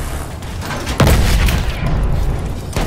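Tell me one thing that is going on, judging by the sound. A loud explosion booms.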